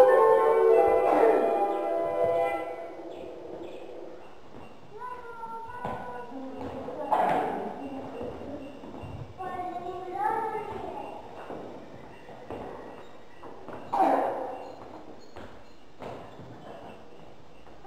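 Children's feet shuffle and tap on a wooden floor.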